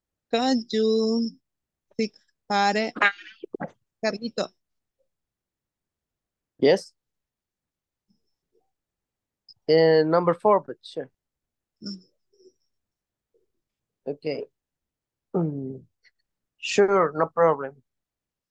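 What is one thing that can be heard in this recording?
A woman speaks clearly over an online call, in short phrases with pauses.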